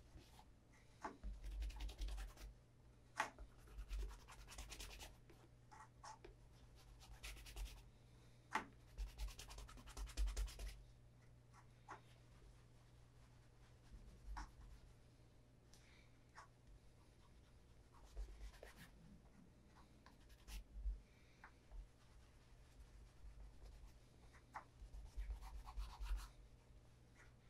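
Fingers rub softly over a leather shoe in short bursts.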